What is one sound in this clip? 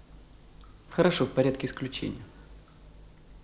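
A man speaks briefly in a firm voice.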